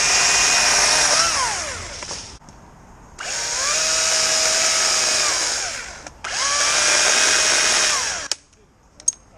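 A chainsaw revs in loud bursts, close by.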